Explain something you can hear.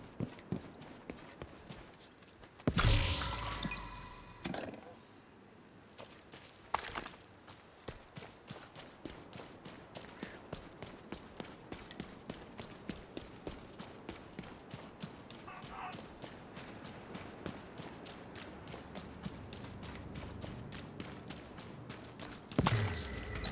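Footsteps run quickly and steadily over the ground.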